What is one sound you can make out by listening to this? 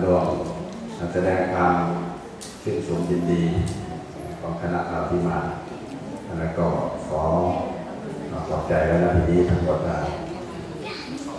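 A group of people chant prayers in unison in an echoing hall.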